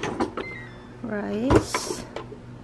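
A rice cooker plays a short electronic tune.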